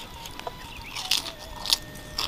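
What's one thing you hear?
Noodles are slurped noisily close up.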